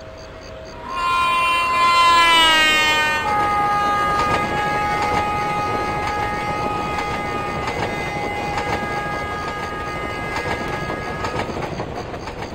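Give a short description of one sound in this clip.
A train horn blares loudly and drops in pitch as the train passes.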